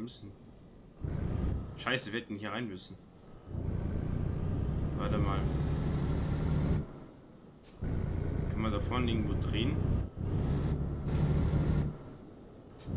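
A truck engine rumbles, growing loud and dropping away again.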